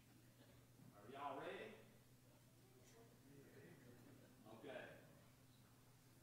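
A man speaks calmly, heard through a microphone in an echoing room.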